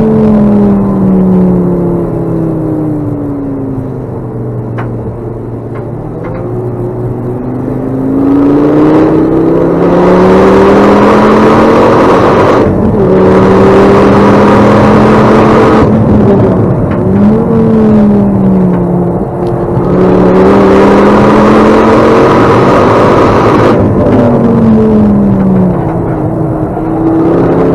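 A racing car's engine roars loudly from inside the cabin, revving up and down through the gears.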